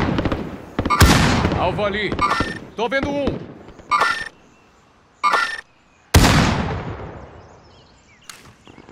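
A rifle fires single shots that echo outdoors.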